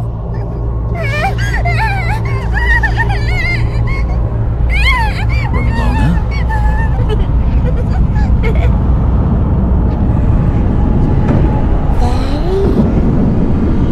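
A young woman sobs and whimpers nearby.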